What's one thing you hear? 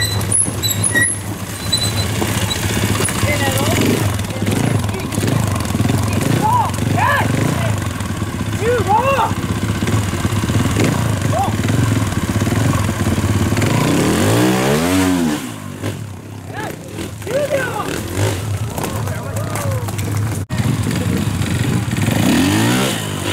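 A motorcycle engine revs hard and sputters up close.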